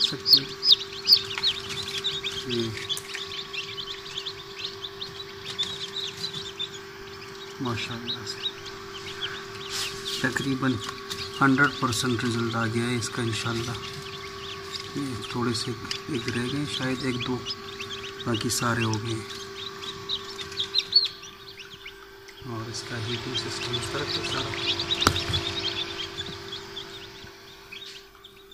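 Chicks cheep in high, rapid peeps close by.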